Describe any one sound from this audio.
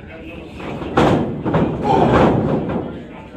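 A wrestler lands a loud slapping strike.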